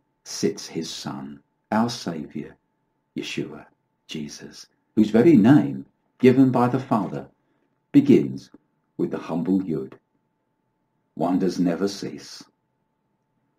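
An older man speaks calmly and closely into a microphone, in short phrases.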